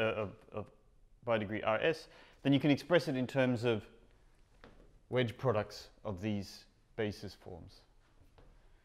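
A man speaks calmly, lecturing in a room with some echo.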